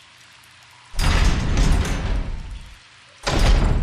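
A heavy metal gate creaks open.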